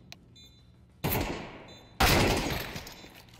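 Rifle shots ring out loudly with echo.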